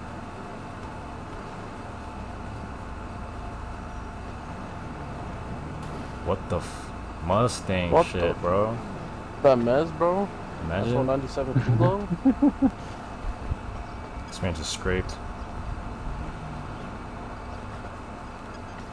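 A car engine idles.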